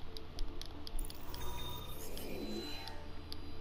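A short bright chime sounds.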